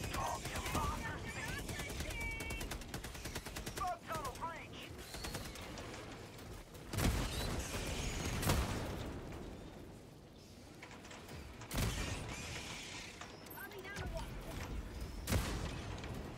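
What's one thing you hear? Loud explosions boom and rumble.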